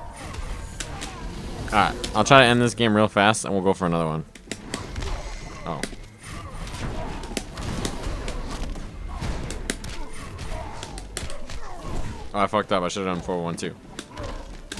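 Heavy punches and kicks land in quick succession.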